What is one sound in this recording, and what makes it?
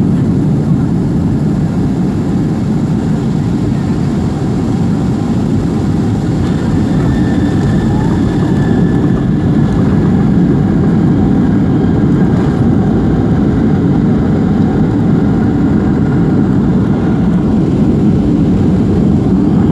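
Jet engines roar steadily, heard from inside an airliner cabin.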